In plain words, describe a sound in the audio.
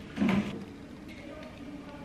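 Okra pods snap as they are broken.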